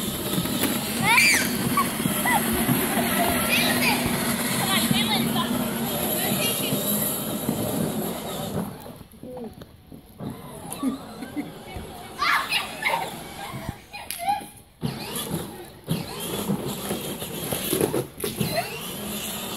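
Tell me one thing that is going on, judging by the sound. Children shout and squeal at a distance.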